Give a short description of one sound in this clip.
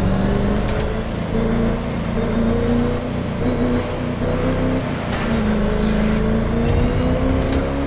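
A sports car engine roars at high speed, its pitch rising and falling with gear changes.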